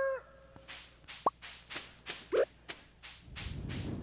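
Soft footsteps patter steadily on dirt.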